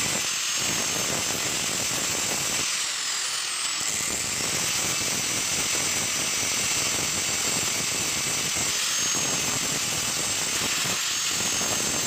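An angle grinder whines steadily at high speed.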